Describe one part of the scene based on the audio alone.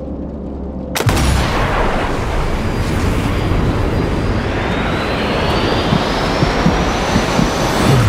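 A bullet whooshes through the air.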